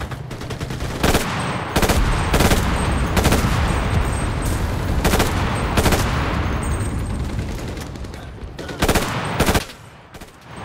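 Loud gunshots boom one after another.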